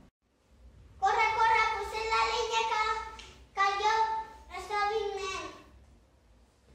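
A young boy speaks clearly.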